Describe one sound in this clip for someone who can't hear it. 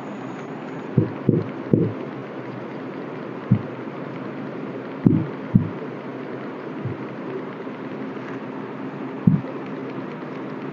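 A marker scratches and taps on a whiteboard.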